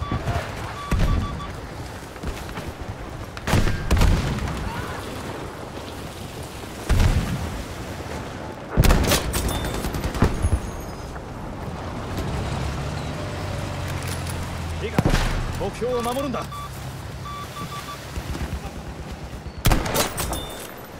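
Rifle shots crack loudly now and then.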